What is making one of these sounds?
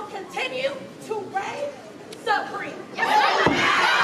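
A group of young women chant loudly in unison.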